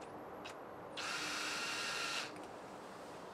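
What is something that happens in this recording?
A cordless drill whirs briefly into metal.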